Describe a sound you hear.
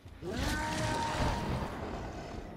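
A magical whoosh crackles and hums.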